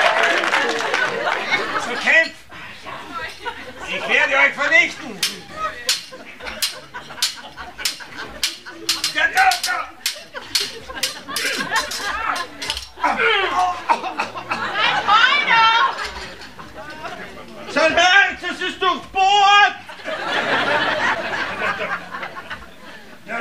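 Men shout and call out loudly nearby.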